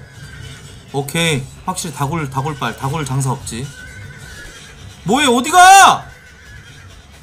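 A man speaks loudly and with animation close to a microphone.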